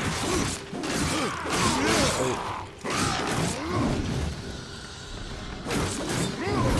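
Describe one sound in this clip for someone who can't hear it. Metal blades clash and strike in a fierce fight.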